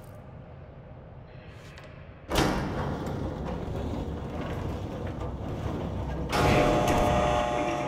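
Footsteps ring on a metal floor.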